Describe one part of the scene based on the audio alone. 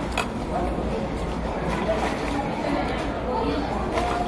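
Paper food wrapping rustles and crinkles close by.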